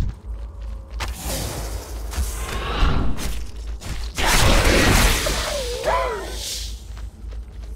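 A magic spell whooshes and crackles loudly in a fight.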